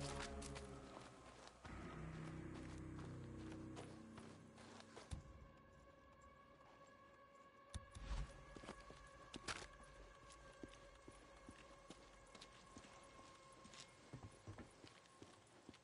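Footsteps crunch on grass and gravel.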